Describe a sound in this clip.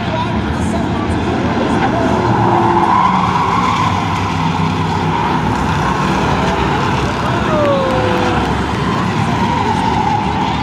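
Many race car engines roar loudly as a pack of cars speeds by.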